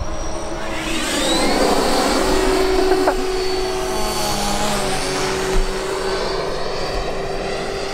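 A small propeller motor whines steadily.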